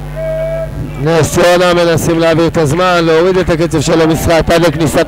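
A crowd chants and cheers loudly.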